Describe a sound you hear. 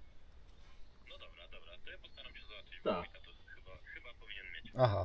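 A man speaks close by into a handheld radio.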